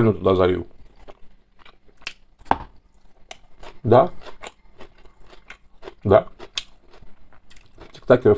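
A man chews and slurps food noisily up close.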